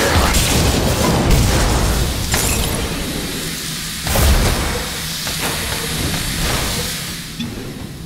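Crackling lightning spells and blasts burst in a video game battle.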